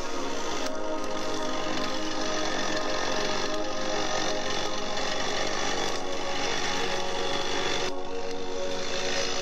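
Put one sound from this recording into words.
A chainsaw engine roars loudly and steadily, with its pitch shifting as it revs.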